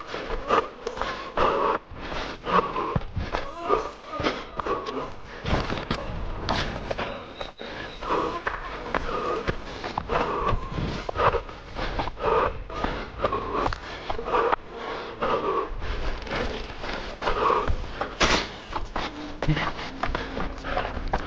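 Footsteps crunch quickly over dry ground and brush.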